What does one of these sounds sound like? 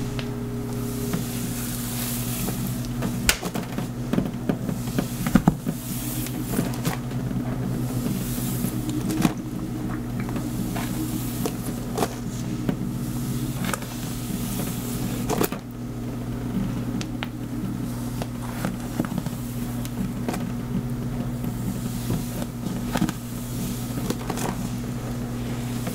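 A comb scratches and crackles through hair close by.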